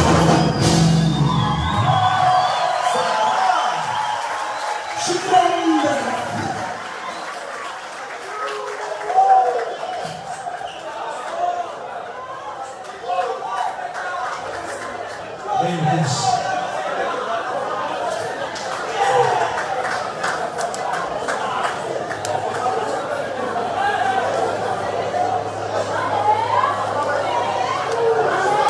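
A singer sings through a microphone.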